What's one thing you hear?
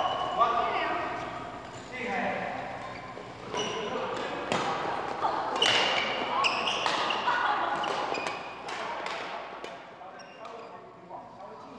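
Rackets strike a shuttlecock back and forth with sharp pops in a large echoing hall.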